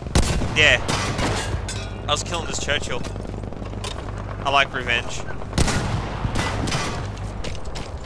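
Gunshots crack in sharp bursts nearby.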